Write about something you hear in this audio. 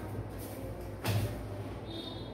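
A man places small hand drums down with a soft knock.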